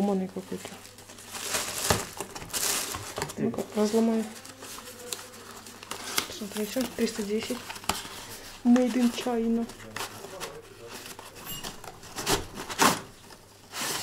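Cardboard packaging rustles and scrapes as it is handled.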